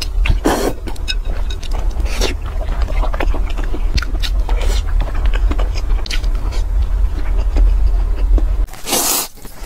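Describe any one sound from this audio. A woman chews soft food wetly close up.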